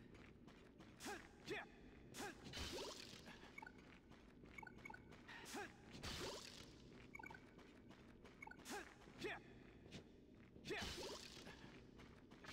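A wooden crate smashes apart.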